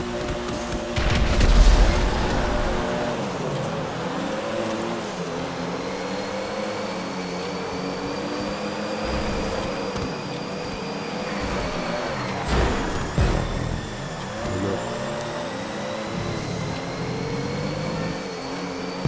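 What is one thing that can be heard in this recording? A race car engine roars and shifts gears as it accelerates.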